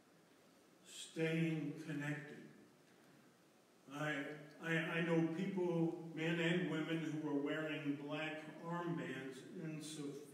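An elderly man speaks calmly into a microphone in an echoing room.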